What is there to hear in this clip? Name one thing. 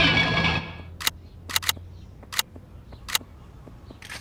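Gunshots crack several times in quick bursts.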